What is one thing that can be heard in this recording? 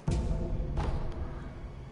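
A figure lands with a heavy thud.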